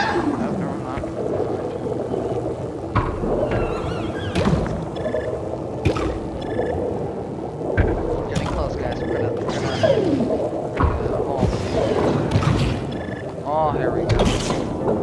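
Sharp zapping and biting effects crack now and then.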